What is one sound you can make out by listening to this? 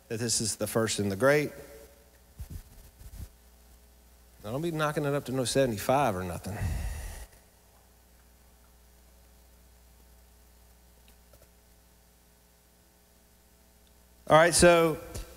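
A man speaks with animation into a microphone, heard through loudspeakers, with long pauses.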